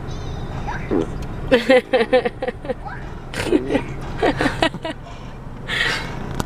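A woman laughs loudly nearby.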